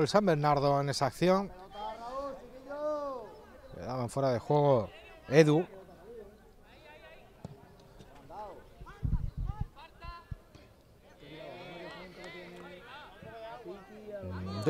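Young men shout loudly outdoors across a sports field.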